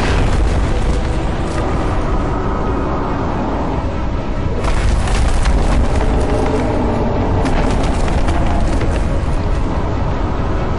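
Explosions boom and rumble with a deep roar.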